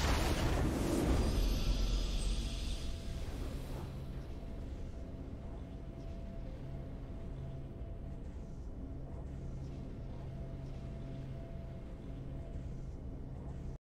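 A triumphant fanfare rings out and gives way to a low, steady musical hum.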